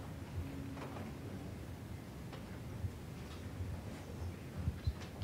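An audience murmurs quietly in a large room.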